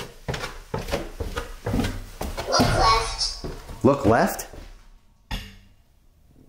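Footsteps creak and thud on wooden stairs.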